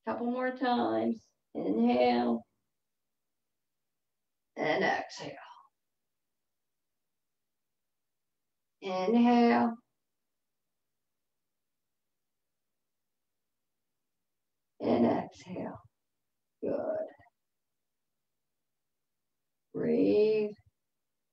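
An older woman speaks calmly in short phrases over an online call, pausing between them.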